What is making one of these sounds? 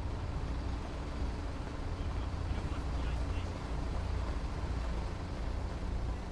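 A bus engine rumbles nearby.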